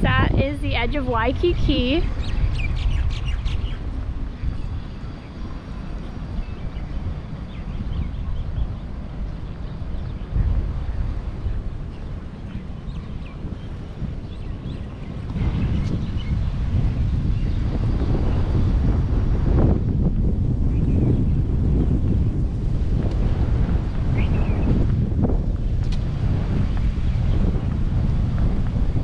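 Wind blows steadily outdoors, gusting louder at times.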